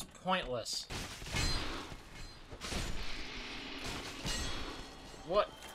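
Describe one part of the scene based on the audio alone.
Metal weapons clash and thud against shields in a fight.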